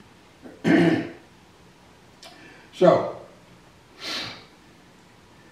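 An elderly man reads out slowly in short phrases into a microphone.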